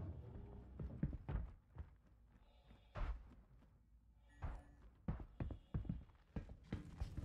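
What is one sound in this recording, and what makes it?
Footsteps clang on a metal ramp.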